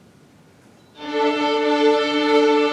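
A string orchestra starts playing a loud, sustained chord in a large hall.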